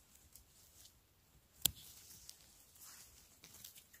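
Scissors snip a mushroom stem.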